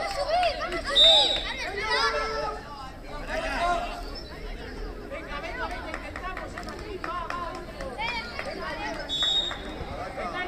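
A referee's whistle blows short, sharp blasts.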